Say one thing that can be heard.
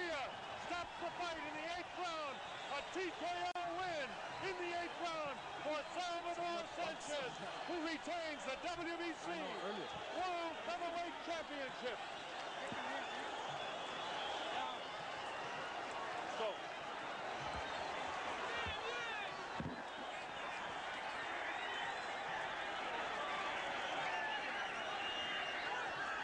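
A large crowd cheers and roars loudly in a big arena.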